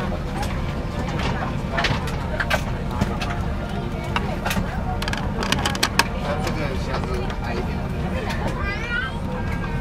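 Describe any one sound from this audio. A steady low engine drone hums throughout.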